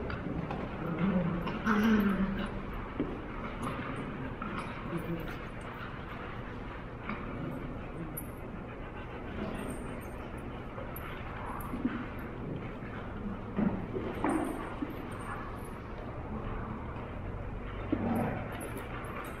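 A dog growls playfully.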